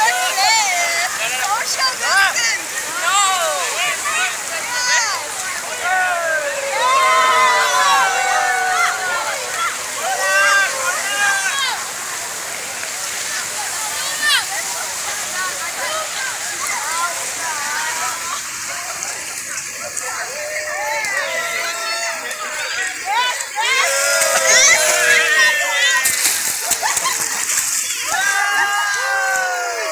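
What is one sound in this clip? Water splashes and sloshes around swimmers.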